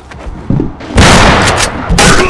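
A pistol shot bangs loudly with a short echo.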